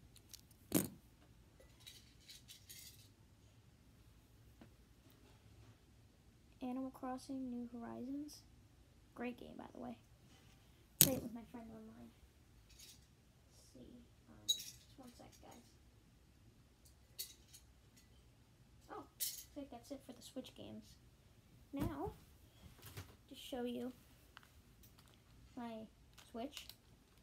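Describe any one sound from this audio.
Clothing rustles and brushes close by.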